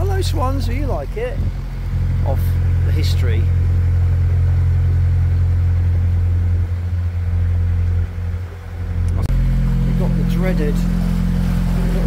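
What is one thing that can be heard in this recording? A boat engine drones steadily at low pitch.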